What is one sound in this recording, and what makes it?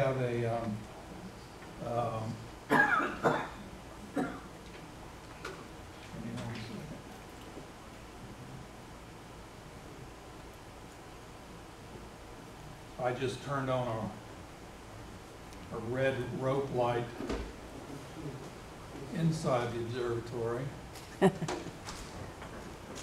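A man speaks calmly in short bursts, pausing between phrases.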